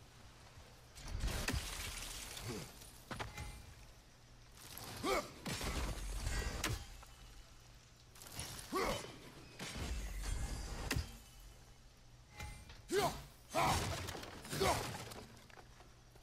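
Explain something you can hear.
A heavy axe strikes hard with loud thuds.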